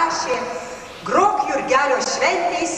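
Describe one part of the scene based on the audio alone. A woman speaks into a microphone over loudspeakers.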